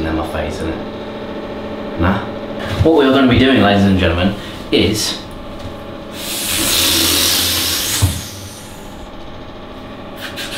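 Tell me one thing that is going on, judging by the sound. An electric trimmer buzzes steadily.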